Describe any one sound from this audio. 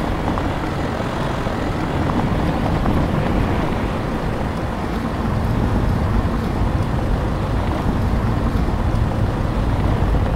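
Tyres crunch over a rough gravel road.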